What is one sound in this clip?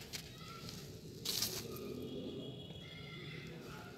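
A hand rustles and crumbles moist soil.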